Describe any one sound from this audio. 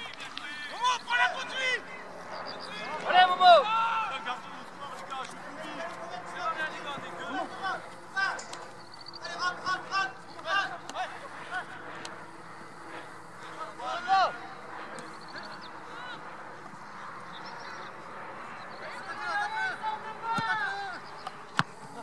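Men shout to each other outdoors across an open field.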